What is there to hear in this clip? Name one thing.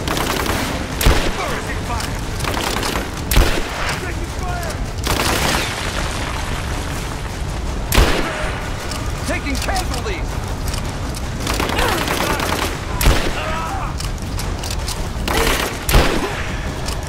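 Rifle shots bang out one at a time.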